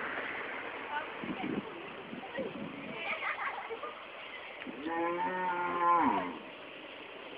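Young women talk and laugh close by.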